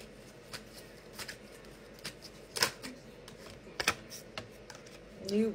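Playing cards shuffle and snap with sharp clicks.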